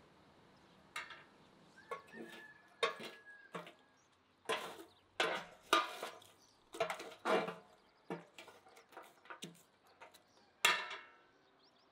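Lumps of charcoal clink and knock together.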